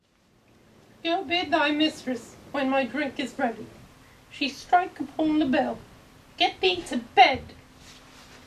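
A young man speaks in short bursts with pauses, close by.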